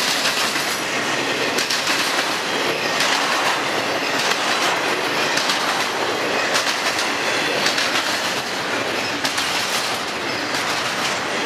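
Train wheels clatter and click over rail joints.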